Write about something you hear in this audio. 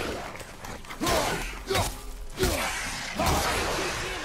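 An axe swings and strikes with heavy thuds.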